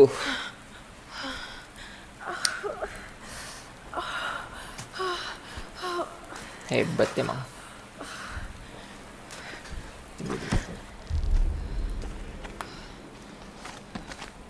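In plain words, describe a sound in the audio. A young man talks calmly into a close microphone.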